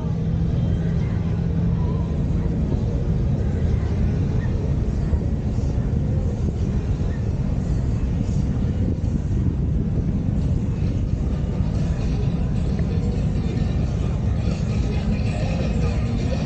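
A car engine rumbles low and steady while driving slowly.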